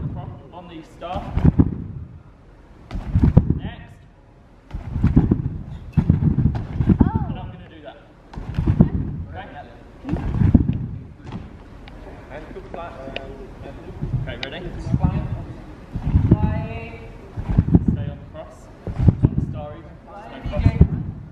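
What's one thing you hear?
A man speaks with animation in a large echoing hall.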